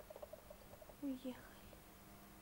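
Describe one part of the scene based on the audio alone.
A woman speaks a few soft words close by.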